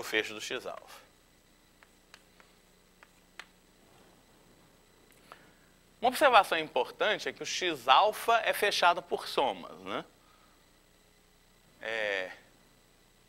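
A man lectures with animation through a clip-on microphone.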